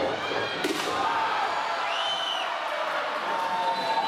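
A wooden board crashes down onto the ring.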